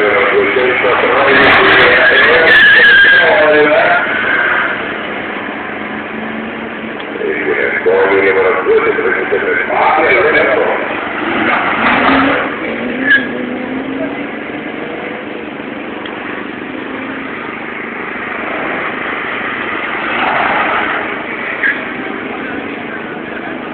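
A rally car engine revs hard and roars past, close by.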